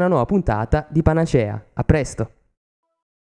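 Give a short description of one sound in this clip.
A man speaks into a microphone up close.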